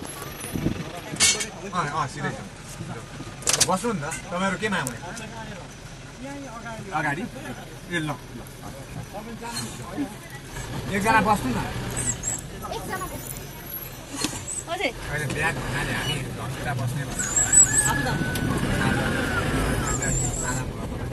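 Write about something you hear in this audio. Men talk nearby, loudly and with animation.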